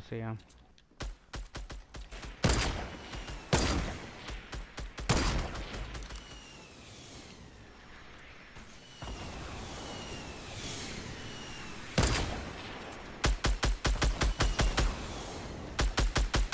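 Footsteps thud quickly on grass and dirt.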